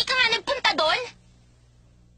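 A young woman speaks sharply.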